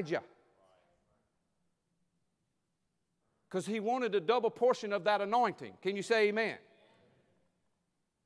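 A man speaks with animation into a microphone, his voice echoing in a large hall.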